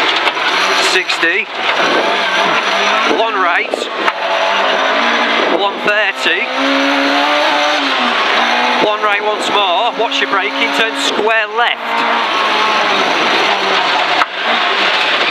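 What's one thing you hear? A rally car engine roars loudly, revving up and down as gears change.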